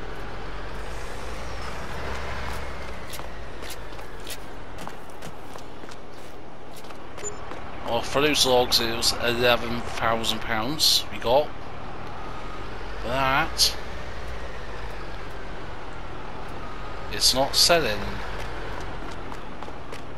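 A heavy truck engine idles with a low, steady hum.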